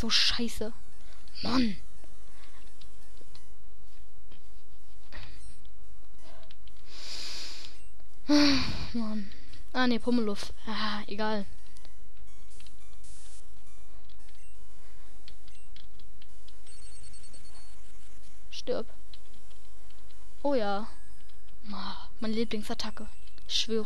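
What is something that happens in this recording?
Electronic game music plays softly.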